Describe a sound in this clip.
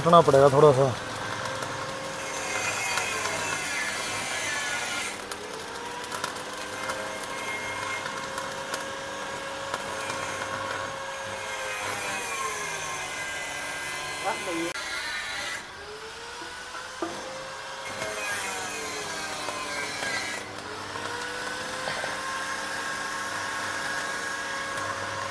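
An arc welder crackles and sizzles steadily.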